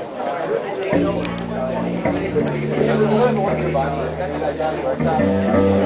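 An electric bass plays a low walking line.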